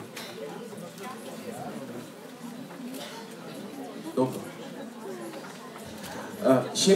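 An audience murmurs quietly in a large room.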